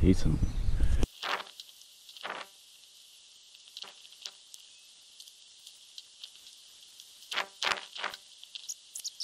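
Something knocks and rattles in a plastic bucket.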